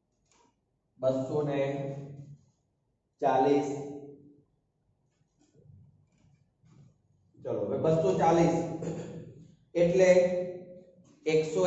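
A man speaks clearly in short phrases, as if explaining a lesson.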